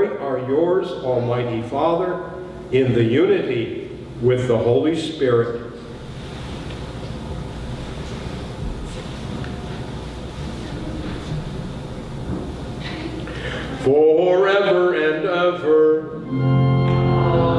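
An elderly man speaks slowly and solemnly through a microphone in a reverberant hall.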